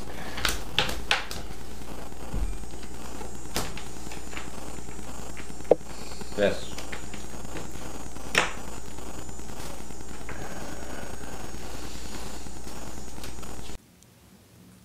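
Playing cards slap and click on a table.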